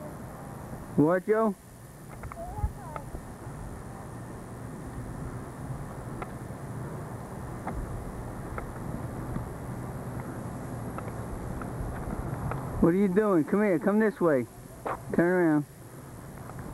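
A young child calls out in a high voice.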